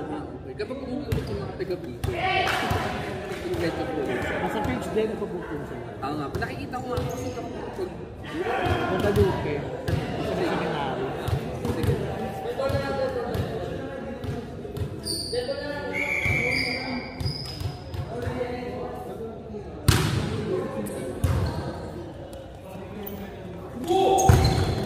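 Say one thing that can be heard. A volleyball thuds off hands and arms.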